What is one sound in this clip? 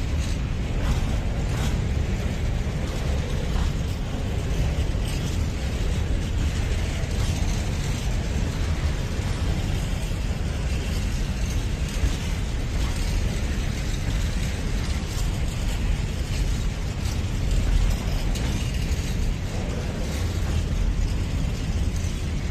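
A freight train rumbles past close by, steady and heavy.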